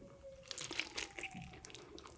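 Crispy bread crackles as a woman bites into it close to a microphone.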